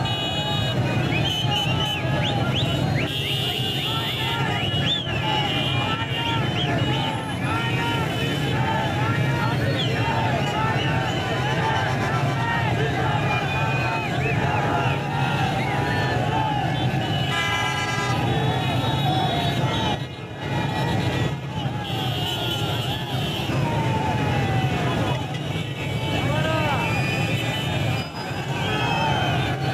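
Car horns honk repeatedly.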